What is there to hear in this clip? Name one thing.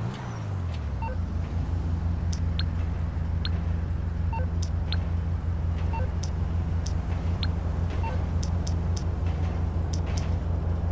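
A phone gives short beeps.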